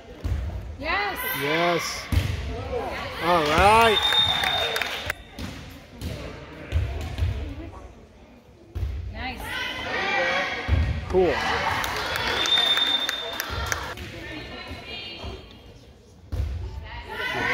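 A crowd of spectators cheers and shouts in a large echoing hall.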